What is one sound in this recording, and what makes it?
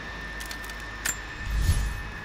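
A menu selection clicks sharply.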